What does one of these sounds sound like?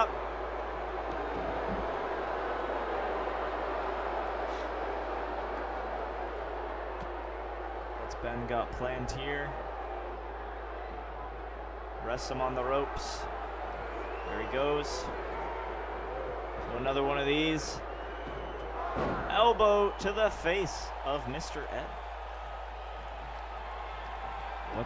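A large crowd roars and cheers steadily.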